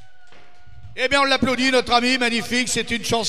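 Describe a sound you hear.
An elderly man speaks with animation into a microphone over a loudspeaker.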